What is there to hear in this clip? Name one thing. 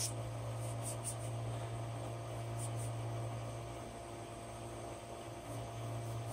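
A machine's motor hums steadily and low.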